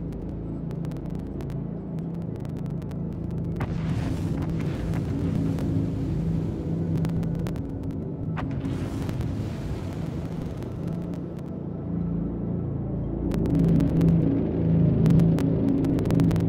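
A spacecraft's engines hum low and steady as it hovers.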